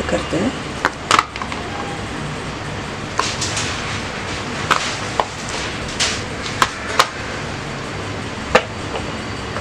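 Small chocolate pieces drop onto a plastic plate with light knocks.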